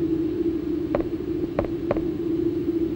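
Footsteps clank on metal.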